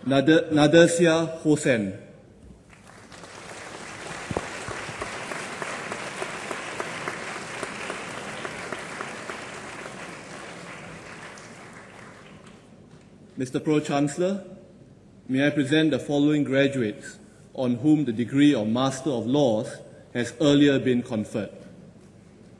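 A man reads out calmly through a microphone in a large hall.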